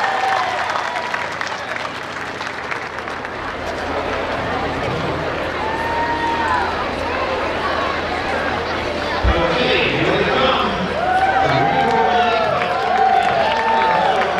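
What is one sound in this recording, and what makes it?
A large outdoor crowd murmurs along a street.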